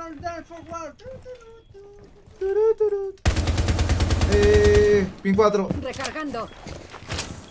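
A young man talks through a microphone, close up.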